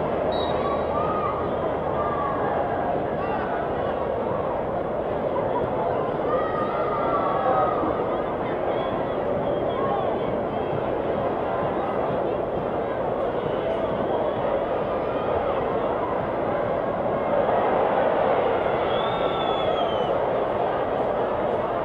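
A large stadium crowd chatters and cheers outdoors.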